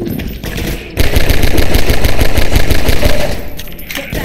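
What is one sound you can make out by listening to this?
A gun fires in a rapid burst of shots.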